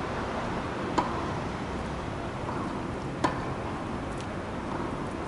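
A tennis ball is struck with a racket in a large echoing hall.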